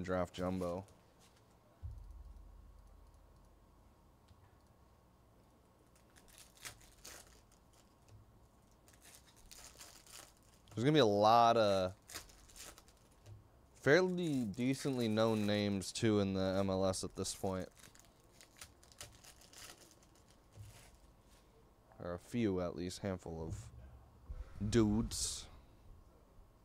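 Card packs rustle and click as hands shuffle them.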